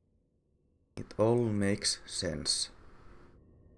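A man speaks briefly with animation into a close microphone.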